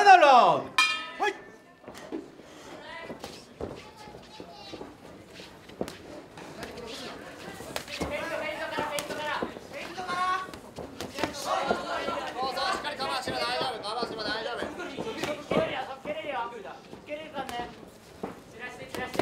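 A crowd shouts and cheers in an indoor hall.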